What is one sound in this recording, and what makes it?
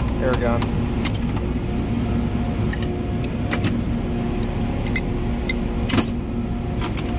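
Metal hand tools clink and rattle against each other.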